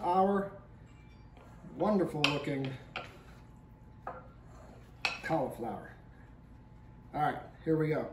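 A wooden spoon scrapes and stirs food in a glass bowl.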